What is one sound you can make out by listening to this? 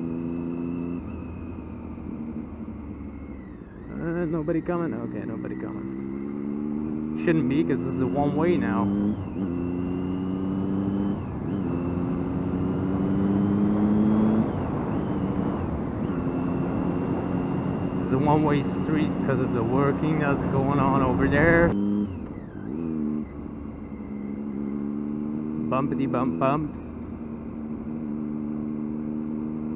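A motorcycle engine hums steadily, its pitch rising and dropping as it changes gear.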